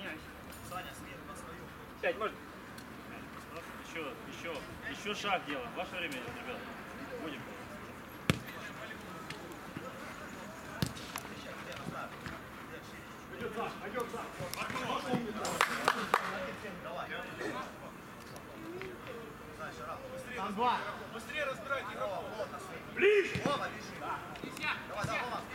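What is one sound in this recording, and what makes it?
Men shout and call out to each other outdoors during a football game.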